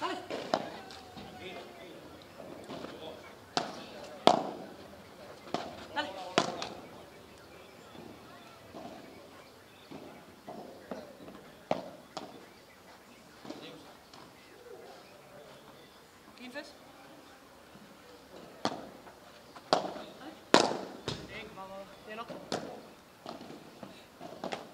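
Padel rackets hit a ball back and forth on an outdoor court.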